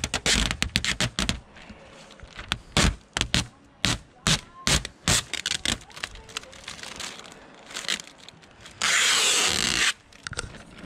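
A plastic sheet crinkles and rustles as hands fold it.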